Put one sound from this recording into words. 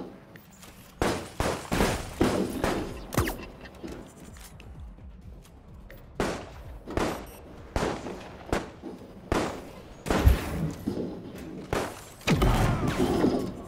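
Gunshots and blasts sound in short bursts.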